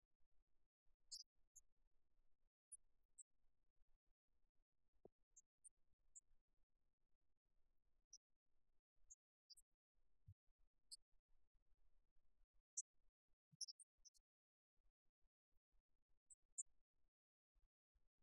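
A racket strikes a shuttlecock with a light pop.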